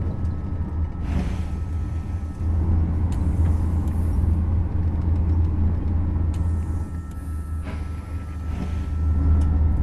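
Sliding doors between carriages hiss open.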